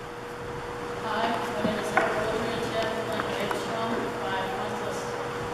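A boy speaks calmly to an audience in an echoing hall.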